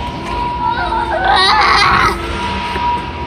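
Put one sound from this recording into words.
A young child shouts excitedly nearby.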